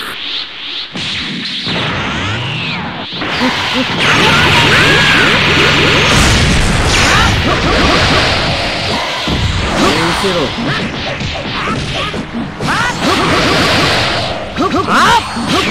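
Punches and kicks land with sharp thuds.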